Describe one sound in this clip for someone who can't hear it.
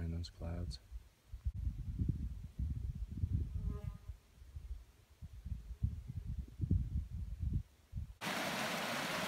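Wind buffets in gusts outdoors.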